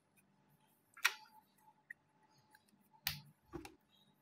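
A plastic pen clatters as it is picked up.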